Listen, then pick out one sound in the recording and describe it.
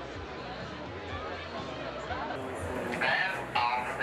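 A large crowd cheers and murmurs in an open space.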